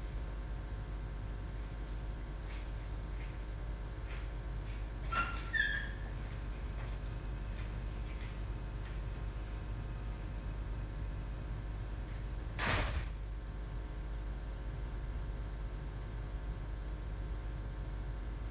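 A projector hums steadily in a quiet room.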